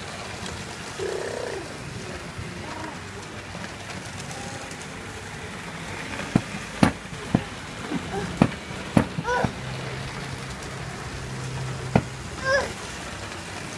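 A young boy babbles briefly up close.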